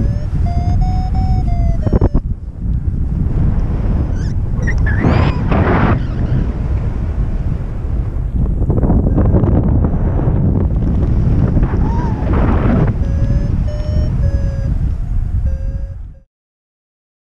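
Wind rushes loudly past in flight.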